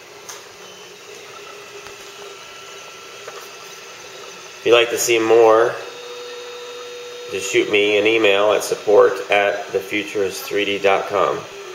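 A machine's motors whir and hum steadily.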